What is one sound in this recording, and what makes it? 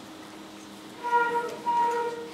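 A school band starts playing a sustained chord.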